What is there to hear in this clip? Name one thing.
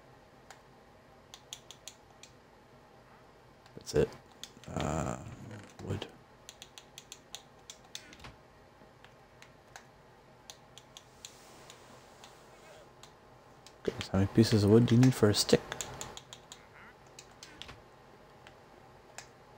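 Soft menu clicks tick repeatedly as items are picked and moved.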